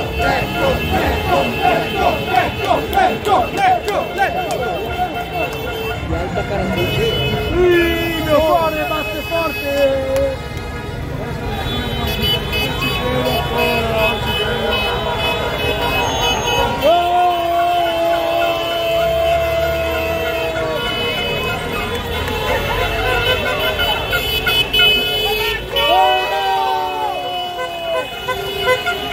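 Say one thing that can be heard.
A large crowd chants and cheers outdoors.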